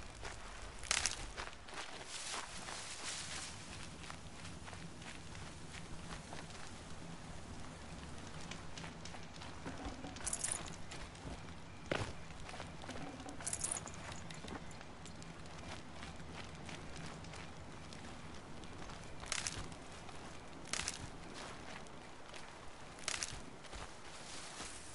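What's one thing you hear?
Fires crackle and burn nearby.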